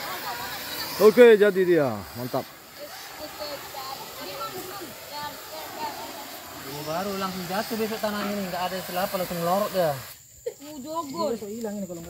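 Men talk loudly outdoors, close by.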